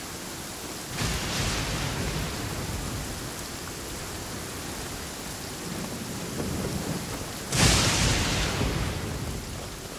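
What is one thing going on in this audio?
Wind rushes past in gusts.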